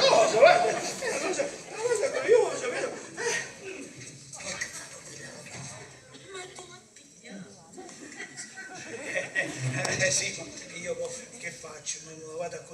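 An elderly man speaks loudly on a stage, heard through microphones in a large hall.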